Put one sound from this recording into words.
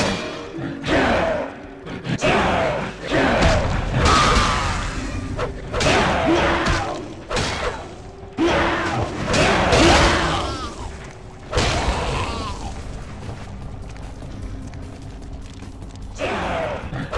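Magic energy crackles and whooshes in short bursts.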